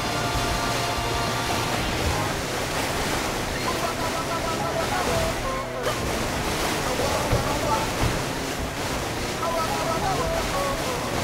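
Water splashes and sprays against a jet ski.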